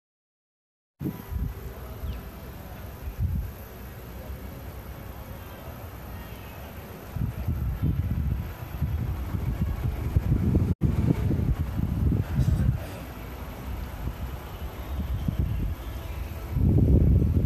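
Wind gusts roughly across the microphone outdoors.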